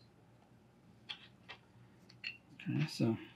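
Small wooden pieces knock and click against a tabletop.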